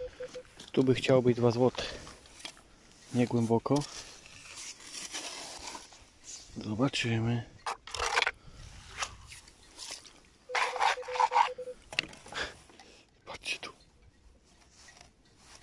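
Boots crunch on wet sand and pebbles.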